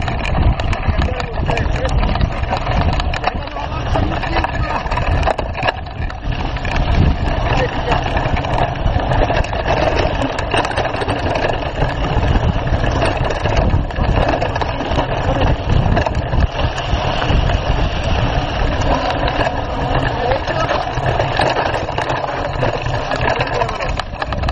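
Bicycle tyres crunch and rattle over a bumpy dirt trail.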